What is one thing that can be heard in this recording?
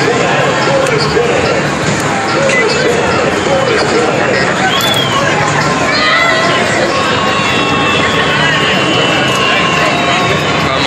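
Arcade machines chime and jingle with electronic music in a noisy hall.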